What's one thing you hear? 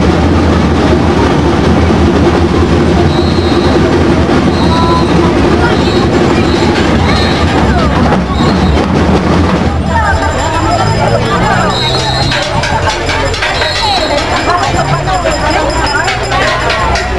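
A marching band plays drums and brass outdoors.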